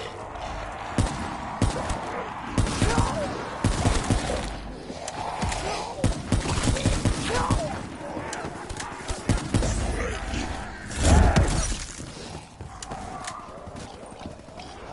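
Energy weapon shots fire in quick bursts.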